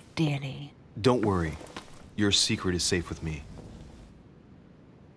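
A man answers calmly in a low voice.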